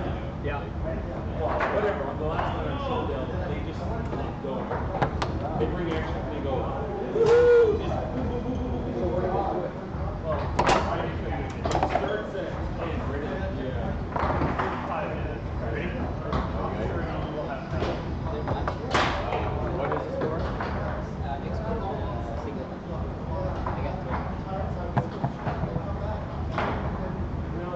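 Foosball rods rattle and clunk as players spin and slide them.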